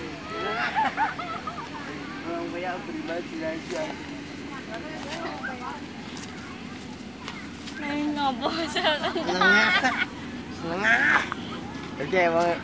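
Teenage boys talk and shout excitedly nearby.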